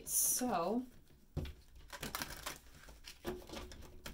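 Playing cards rustle and flick as they are shuffled by hand.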